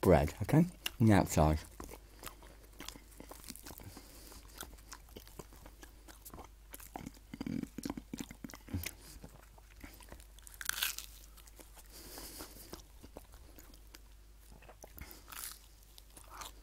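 Food crackles and rustles in a man's hands.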